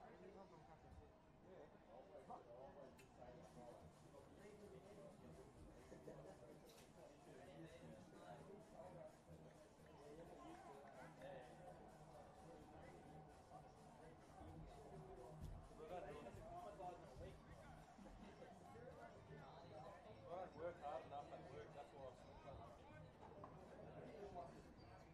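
A crowd of spectators chatters and calls out outdoors at a distance.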